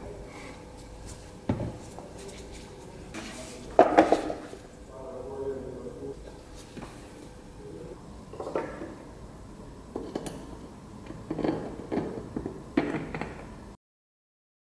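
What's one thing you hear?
Metal parts knock and clink as they are handled.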